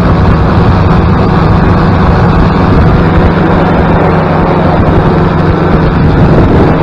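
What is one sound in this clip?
A powered parachute's propeller engine drones in flight.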